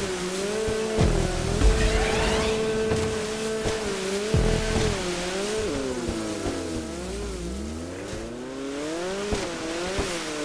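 Water splashes and sprays against a jet ski.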